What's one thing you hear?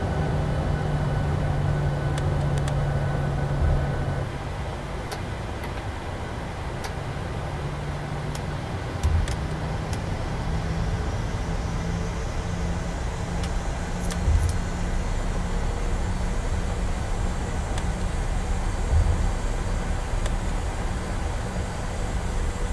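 Jet engines hum steadily with a low drone.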